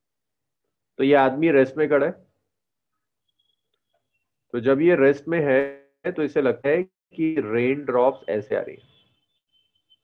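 A man speaks calmly over an online call, explaining.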